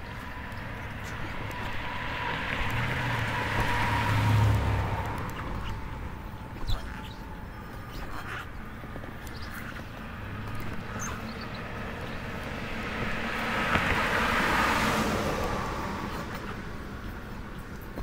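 A car drives past on a nearby road, swelling and then fading away.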